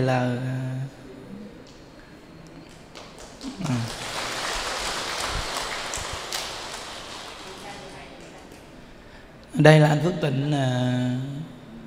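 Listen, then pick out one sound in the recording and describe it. A man speaks into a microphone with a cheerful, laughing tone.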